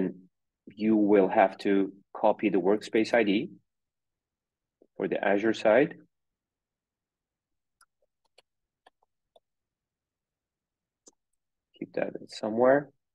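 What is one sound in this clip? A man talks calmly over an online call, in short phrases with pauses.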